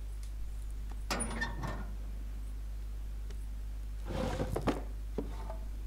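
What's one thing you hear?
A hand rummages through rustling clutter.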